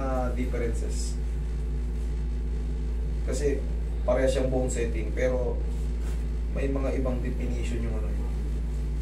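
A young man speaks calmly nearby.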